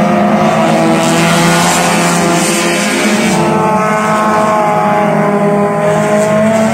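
Racing car engines roar and whine as the cars speed around a track.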